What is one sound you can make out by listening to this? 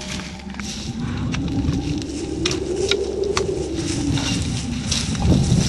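Dead leaves and branches rustle as someone pushes through brush.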